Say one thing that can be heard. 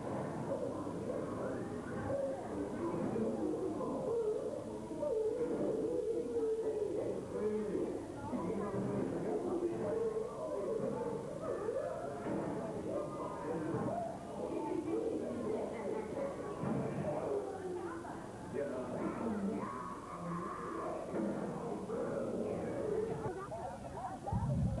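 A crowd of people chatters and murmurs.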